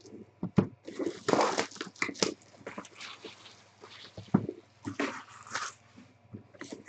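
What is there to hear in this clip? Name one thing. A cardboard box scrapes and thumps as it is moved.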